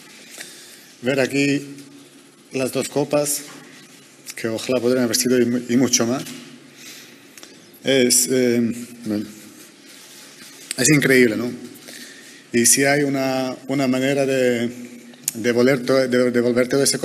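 A young man speaks haltingly and emotionally into a microphone, with long pauses.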